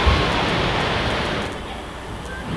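A burst of flame roars.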